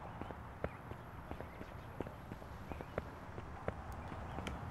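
Footsteps slap quickly on concrete.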